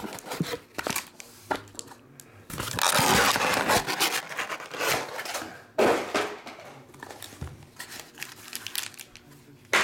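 Foil-wrapped packs crinkle in a hand.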